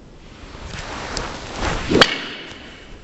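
A golf club swishes through the air.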